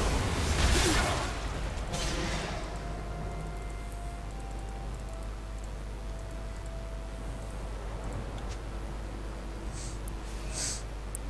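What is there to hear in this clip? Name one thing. Game spell effects whoosh and crackle in short bursts.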